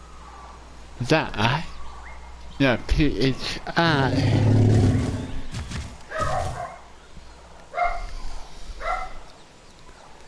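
A large animal lets out deep, bellowing calls, close by.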